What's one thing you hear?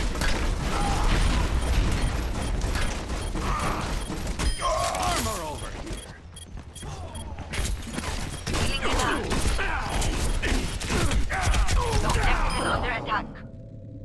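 Rapid gunfire rattles and booms in quick bursts.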